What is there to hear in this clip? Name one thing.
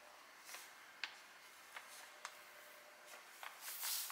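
Hands tap lightly on paper.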